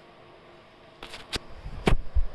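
Loud thumps and knocks of handling close to the microphone.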